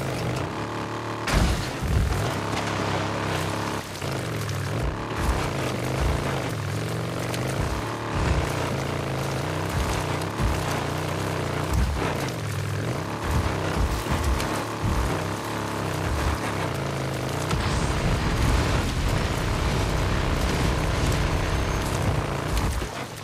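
A motorcycle engine revs and roars, rising and falling in pitch.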